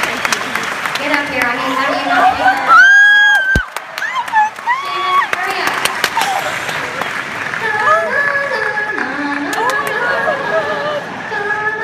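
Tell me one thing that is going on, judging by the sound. A woman sings through loudspeakers.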